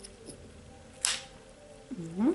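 A plastic clip snaps shut.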